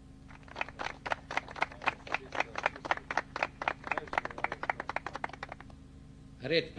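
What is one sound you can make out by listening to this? A group of boys claps hands quickly in rhythm.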